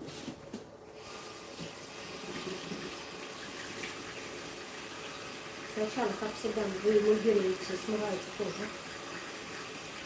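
Water sprays from a shower head and splashes steadily.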